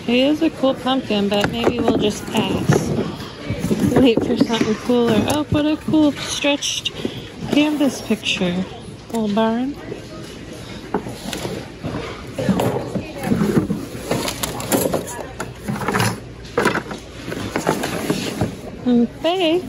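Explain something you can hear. Objects clatter and knock as a hand moves them about.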